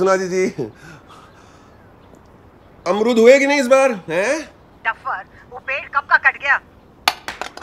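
A middle-aged man talks with animation on a phone.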